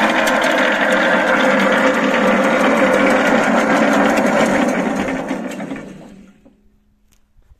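A small engine roars loudly, then winds down and stops.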